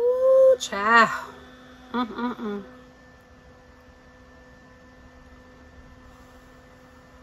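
A small handheld fan whirs softly.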